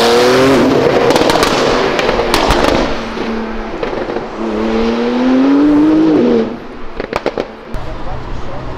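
Exhaust pops and crackles sharply.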